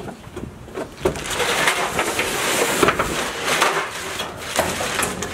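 A plastic trash bag rustles and crinkles as debris is stuffed into it.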